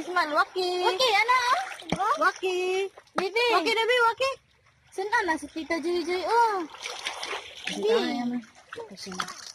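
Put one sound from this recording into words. A young woman speaks animatedly close by.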